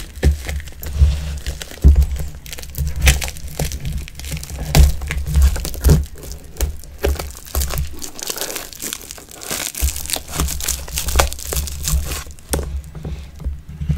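Plastic wrapping crinkles and rustles under hands.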